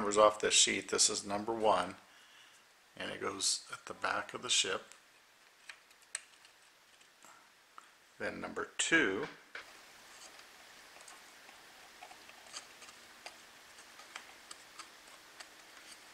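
Thin wooden pieces click and tap softly as they are handled.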